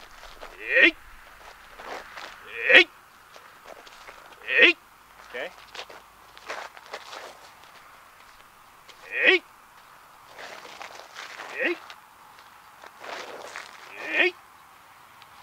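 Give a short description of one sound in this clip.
A young man shouts sharply again and again.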